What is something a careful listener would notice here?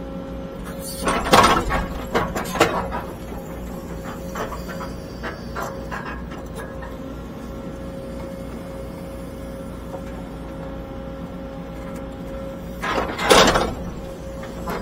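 An excavator bucket scrapes and thuds into dirt.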